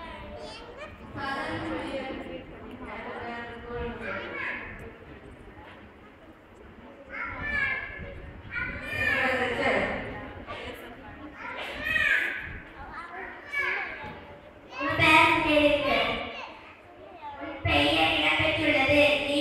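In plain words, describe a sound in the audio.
A young man speaks with animation into a microphone, heard over a loudspeaker in an echoing hall.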